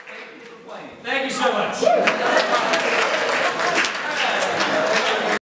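Several young men sing loudly together in a large echoing hall.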